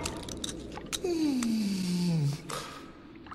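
A man's voice lets out a long, falling groan up close.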